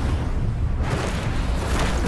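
Fires crackle among burning wreckage.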